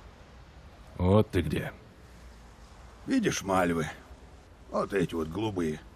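A middle-aged man speaks in a low, weary voice, close by.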